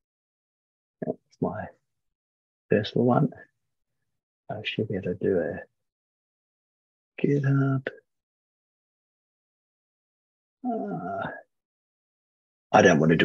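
A man speaks calmly in short bursts over an online call.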